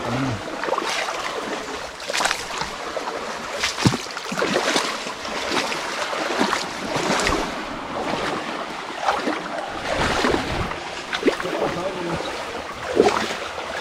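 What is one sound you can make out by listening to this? A shallow stream flows and trickles steadily.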